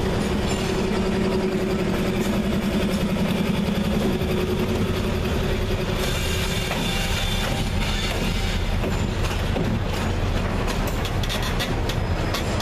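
Diesel locomotives rumble and roar loudly close by.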